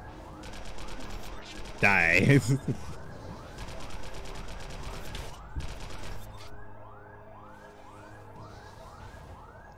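Energy weapons fire in rapid bursts.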